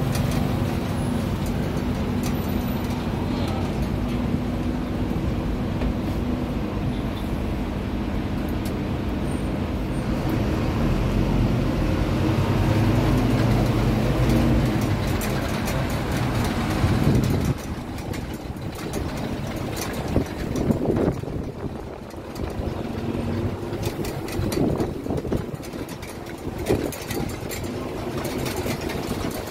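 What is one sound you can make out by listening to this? Wind rushes past on an open-top bus.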